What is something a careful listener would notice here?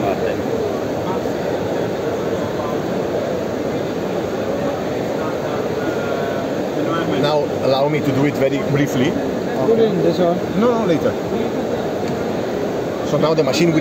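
A crowd murmurs steadily in a busy hall.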